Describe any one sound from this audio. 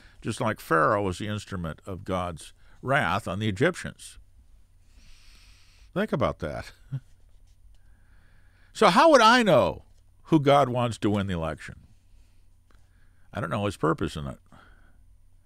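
An elderly man speaks calmly and closely into a microphone, with pauses.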